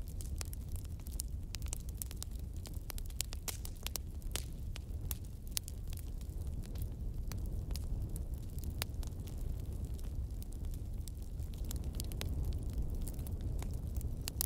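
Flames roar with a low, steady rumble.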